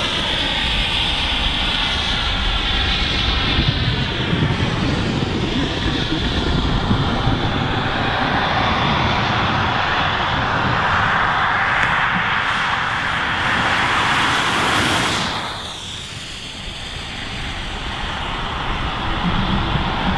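Wind roars and buffets loudly outdoors.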